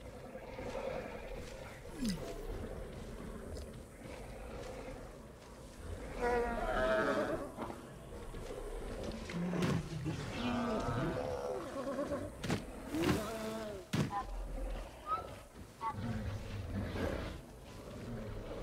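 Heavy footsteps thud slowly on dry ground.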